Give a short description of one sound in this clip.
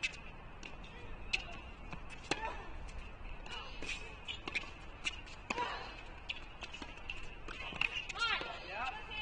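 Rackets strike a tennis ball back and forth with sharp pops.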